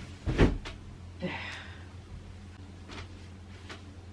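Fabric rustles softly as a cover is handled.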